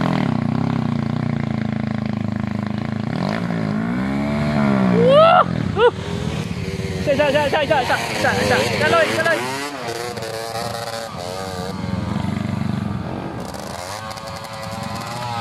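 A dirt bike engine revs and whines as the bike climbs closer.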